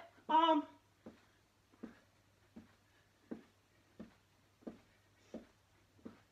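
Feet tap lightly on a carpeted floor in a steady rhythm.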